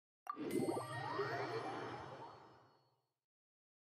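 A game chime rings out and fades.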